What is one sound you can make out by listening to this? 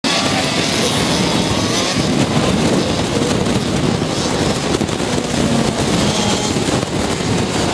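A go-kart engine buzzes loudly as the kart races through a bend.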